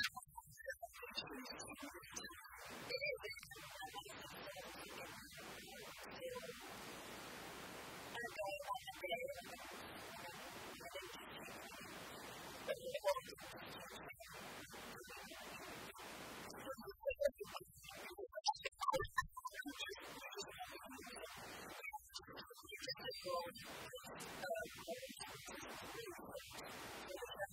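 A young woman talks and laughs close to a microphone.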